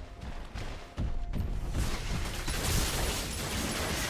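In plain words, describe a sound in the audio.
Magic blasts and weapon hits crackle and thump in a game fight.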